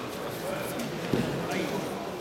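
A body thuds heavily onto a mat.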